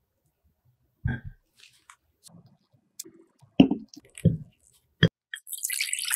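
A glass bowl clinks on a hard surface.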